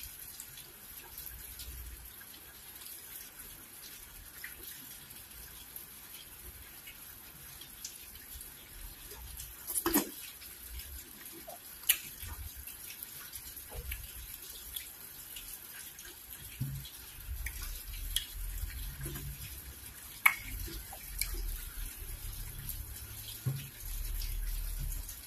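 Fingers squish and squelch through soft, sticky food close up.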